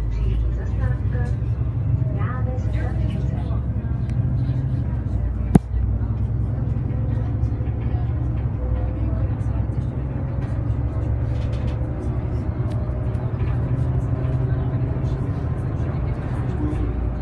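Tyres roll along a road.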